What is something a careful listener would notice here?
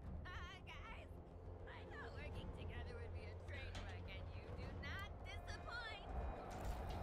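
A young woman speaks playfully and with animation, close by.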